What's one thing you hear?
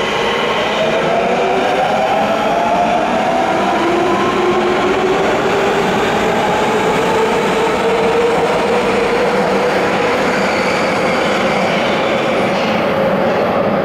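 An electric train pulls out with a rising motor whine and rumbling wheels.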